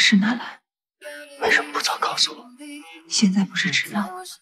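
A young woman speaks sharply nearby.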